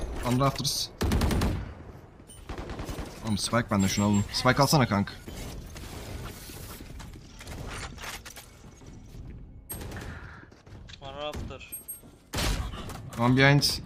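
A sniper rifle fires loud shots in a video game.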